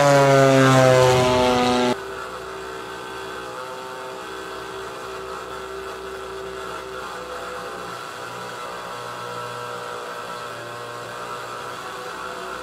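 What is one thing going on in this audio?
A small plane engine drones loudly, then drops to a steadier, quieter hum.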